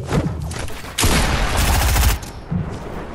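A gun fires in a rapid burst of shots.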